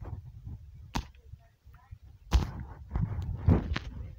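Wooden blocks knock and crack as they are broken.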